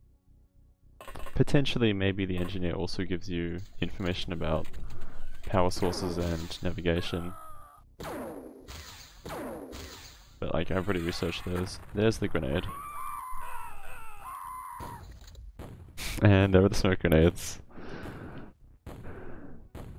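A young man talks with animation into a close headset microphone.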